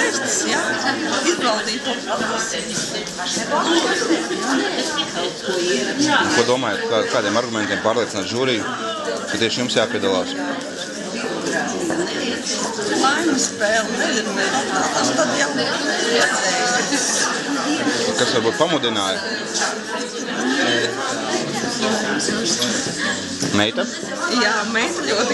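A crowd of people chatters all around in a busy room.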